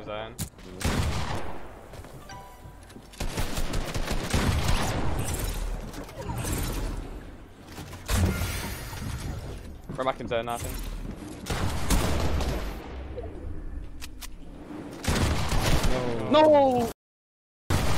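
Gunshots crack in quick bursts, close by.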